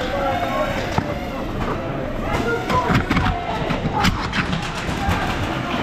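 Toy foam blasters pop and click in a large echoing hall.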